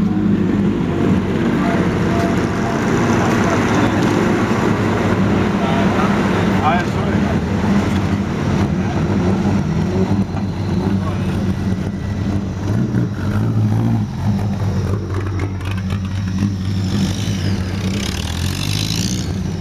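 Several old cars' engines rumble and rev as they approach and pass close by.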